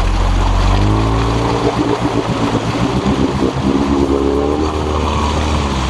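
An all-terrain vehicle engine revs hard.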